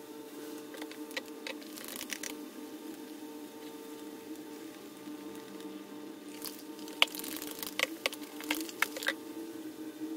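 A rod taps and scrapes against a glass.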